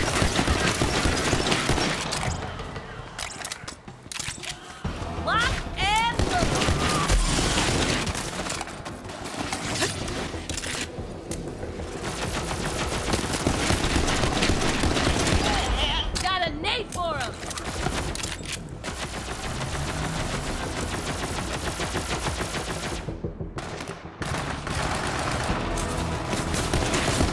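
Rapid gunfire crackles and bangs in bursts.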